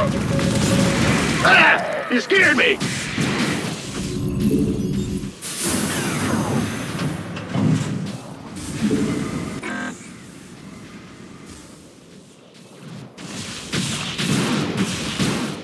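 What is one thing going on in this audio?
Gunfire crackles in short bursts.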